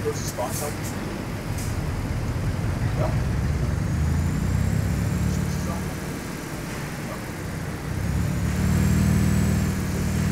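A truck engine rumbles low and steady, rising and falling as it drives slowly.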